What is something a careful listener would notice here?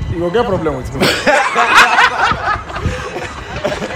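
Several men laugh loudly close by.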